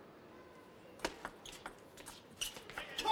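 A ping-pong ball clicks rapidly back and forth across a table.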